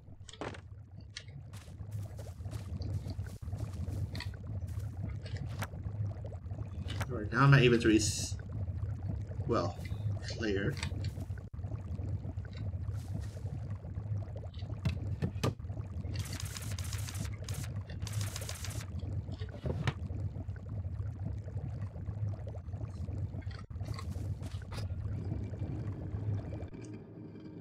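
A cauldron bubbles softly.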